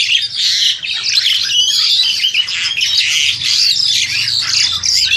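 A black-collared starling sings a loud, chattering song.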